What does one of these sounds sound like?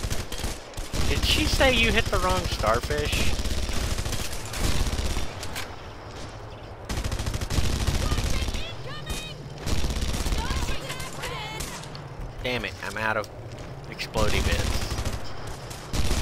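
A heavy gun fires in loud bursts with crackling blasts.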